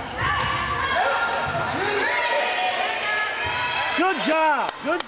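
Young women call out to each other in an echoing hall.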